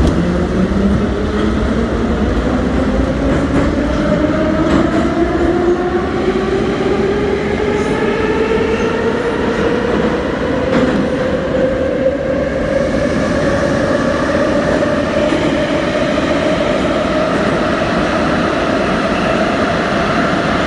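A subway train's electric motors whine, rising steadily in pitch as the train speeds up.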